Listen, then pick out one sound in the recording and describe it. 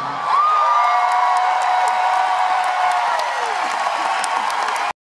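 A large crowd cheers and whistles loudly.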